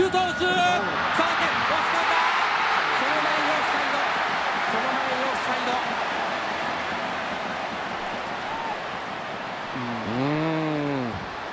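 A stadium crowd roars loudly, then slowly dies down.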